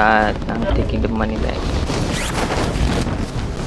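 A parachute snaps open with a flapping rustle.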